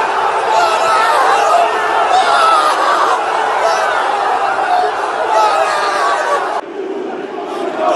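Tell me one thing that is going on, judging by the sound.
A young man shouts with excitement close to the microphone.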